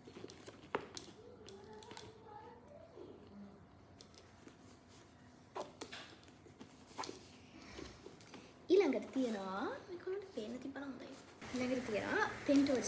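Plastic items click and rustle as a bag is unpacked.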